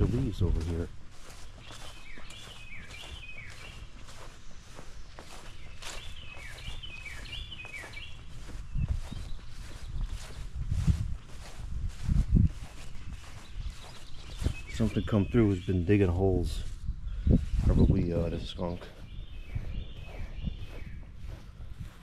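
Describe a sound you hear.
Footsteps swish steadily through short grass outdoors.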